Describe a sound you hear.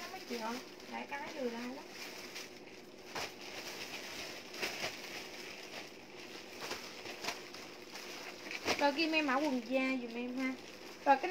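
Plastic bags crinkle and rustle in a young woman's hands.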